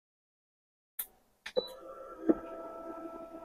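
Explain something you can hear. A heat press clicks and pops open.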